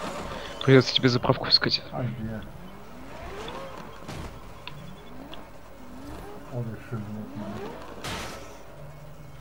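A car engine revs and roars as the car speeds up and slows down.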